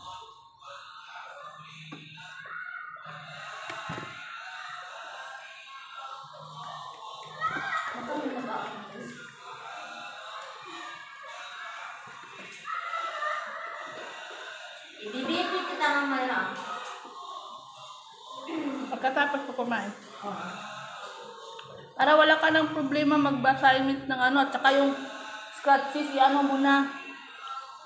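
A woman talks close by, with animation.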